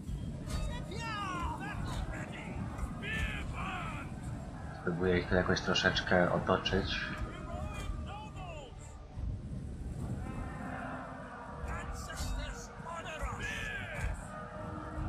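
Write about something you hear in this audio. A large battle rages with a dense, steady din of clashing weapons and shouting soldiers.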